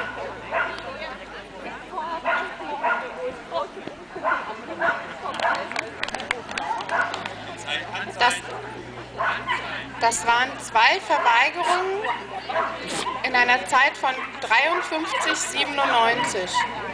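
Men and women chat nearby in the open air.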